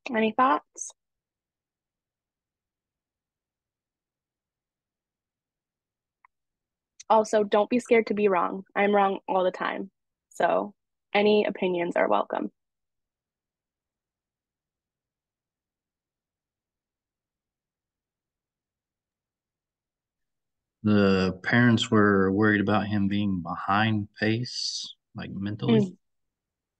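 A woman speaks calmly over an online call, with pauses between phrases.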